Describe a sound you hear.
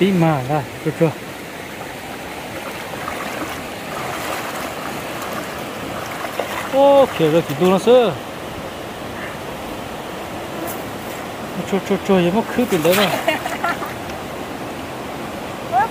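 A shallow stream flows and babbles steadily.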